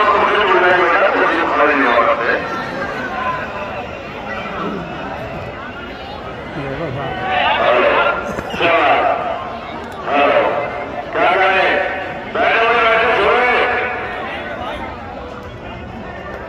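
A man speaks with animation over a loudspeaker.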